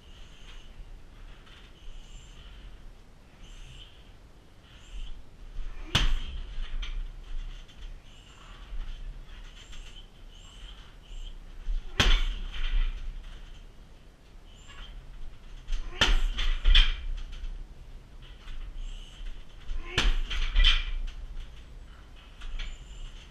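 A man breathes sharply with each punch.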